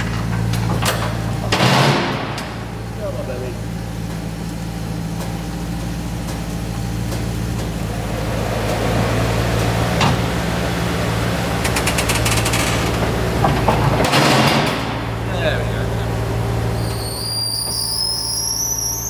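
A car lift hums steadily as it raises a car.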